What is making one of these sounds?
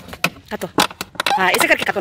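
A knife saws through a plastic bottle with a crackle.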